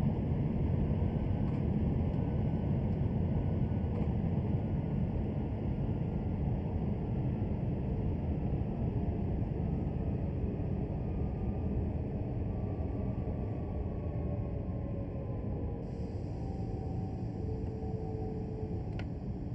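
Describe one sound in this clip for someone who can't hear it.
An electric motor whines, its pitch falling as the train slows.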